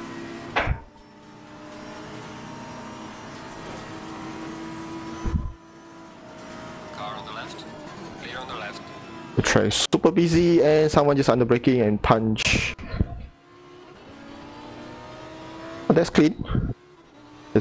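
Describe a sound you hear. A racing car engine drones and shifts through gears.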